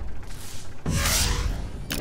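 A mechanical robot fires a gun with a loud bang.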